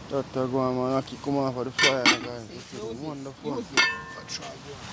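A metal pot lid clanks.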